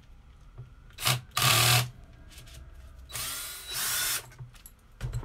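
A power drill whirs in short bursts.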